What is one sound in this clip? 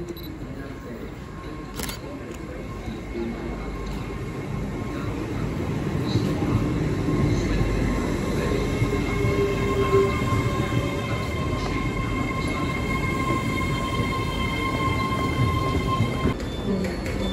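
An electric train pulls in alongside a platform with a deep rumble.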